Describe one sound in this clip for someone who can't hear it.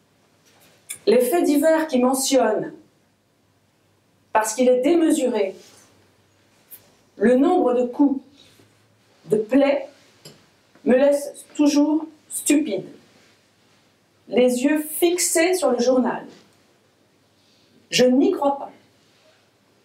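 A woman reads aloud expressively into a microphone, with pauses between phrases.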